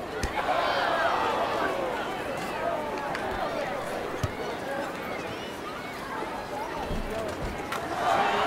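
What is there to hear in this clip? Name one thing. A crowd murmurs and cheers in the background.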